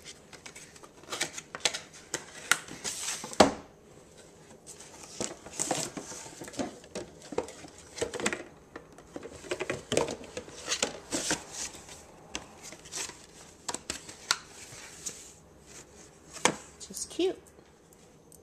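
Hands handle a cardboard box, which rustles and taps.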